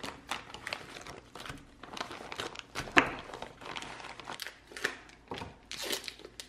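Plastic packaging crinkles and rustles.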